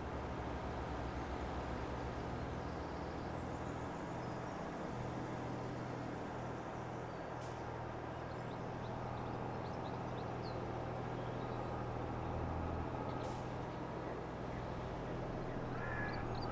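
A tractor engine hums steadily while hauling a trailer.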